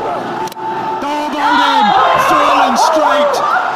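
A group of young men and a young woman cheer loudly.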